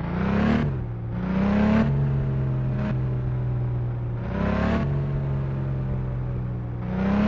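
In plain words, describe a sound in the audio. A car engine hums and revs up repeatedly.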